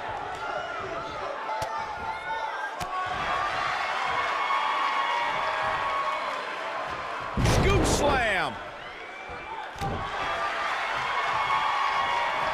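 A large crowd cheers and shouts steadily in a big echoing arena.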